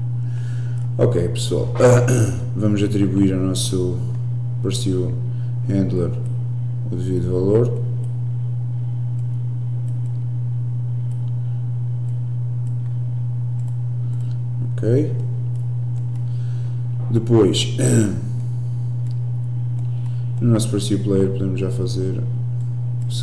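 A young man talks calmly into a close microphone, in short bursts.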